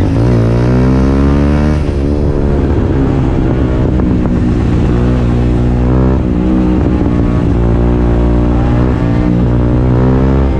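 A motorcycle engine idles loudly up close and revs now and then.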